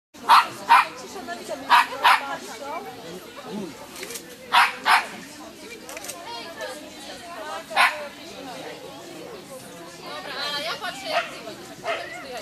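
A boy calls out short commands to a dog outdoors.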